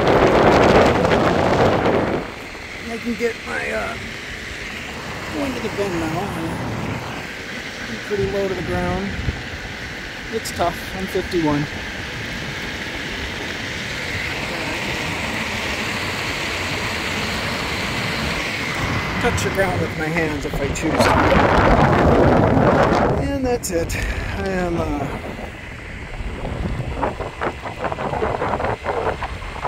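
Tyres hum on a paved path.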